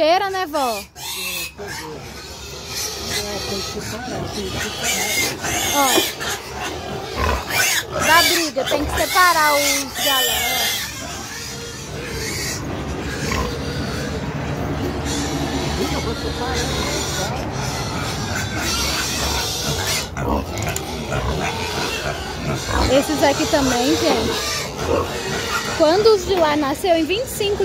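Pigs grunt and squeal close by.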